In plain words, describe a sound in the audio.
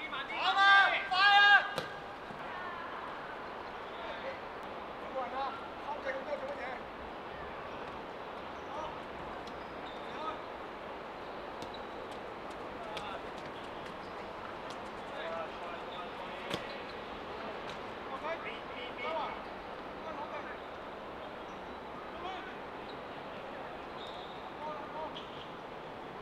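Young men shout to each other outdoors across a football pitch.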